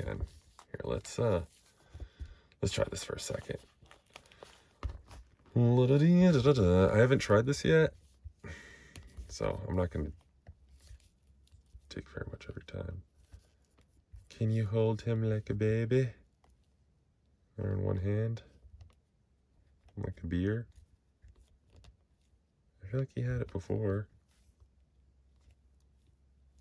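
Plastic toy figure joints click and creak as hands move them.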